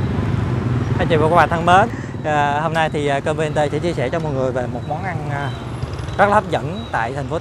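A woman talks animatedly nearby.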